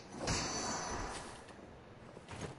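A loud burst of combat effects crashes.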